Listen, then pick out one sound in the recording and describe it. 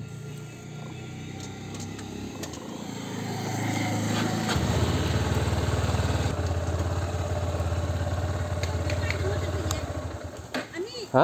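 A motorcycle engine idles close by, then revs up.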